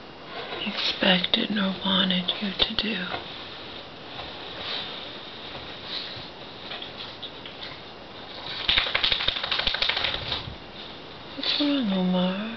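A woman speaks quietly and close by.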